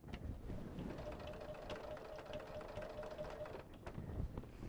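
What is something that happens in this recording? A sewing machine whirs as it stitches.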